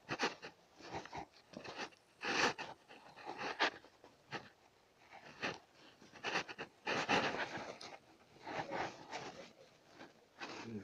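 A cat sniffs close by in short bursts.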